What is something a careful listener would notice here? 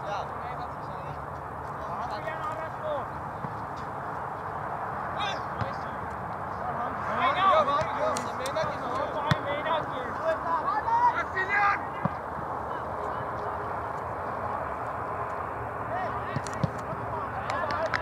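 Young men shout to each other from a distance across an open field.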